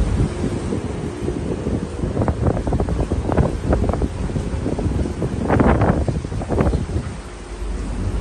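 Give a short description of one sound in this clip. Wind gusts loudly past.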